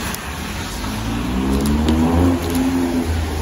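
A car engine revs as the car accelerates.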